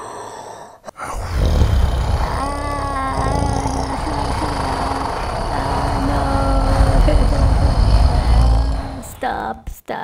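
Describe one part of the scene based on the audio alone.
A deep explosion booms and rumbles.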